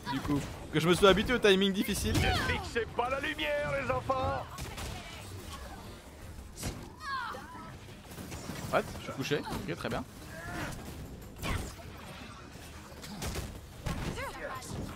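Blows, blasts and zaps of fighting crash in quick bursts.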